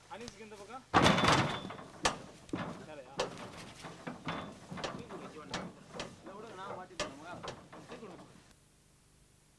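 Heavy wooden logs thud onto a truck bed.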